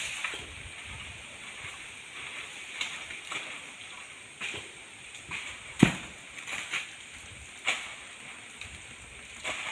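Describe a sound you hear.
Palm fronds rustle overhead in a light breeze.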